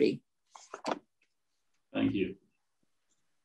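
An elderly man speaks calmly and close by, in short bursts.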